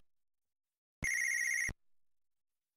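A retro video game plays a harsh electronic buzz.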